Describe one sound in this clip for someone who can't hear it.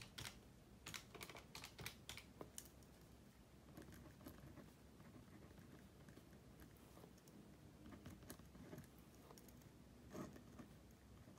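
Paper rustles under a hand.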